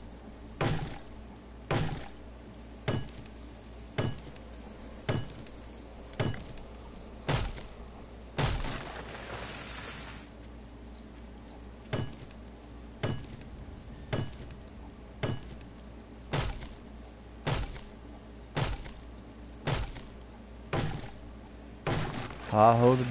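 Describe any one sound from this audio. An axe chops into wood with sharp, regular thuds.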